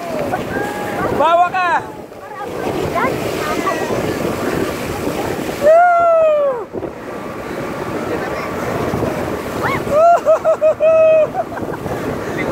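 Water rushes and splashes loudly around a speeding boat.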